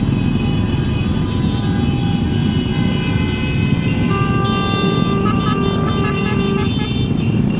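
Motorcycle engines rumble steadily close by.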